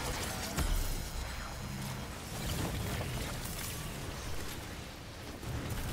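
Energy blasts whoosh and hum.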